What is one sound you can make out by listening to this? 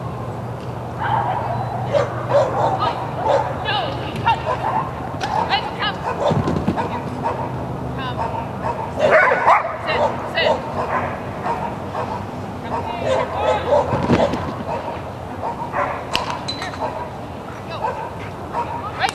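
A man calls out commands to a dog with animation outdoors.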